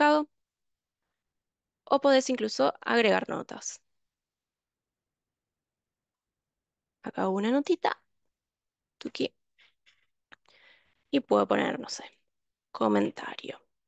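A young woman speaks calmly in short phrases into a microphone.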